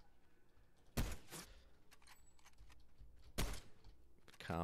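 A sniper rifle fires sharp single shots.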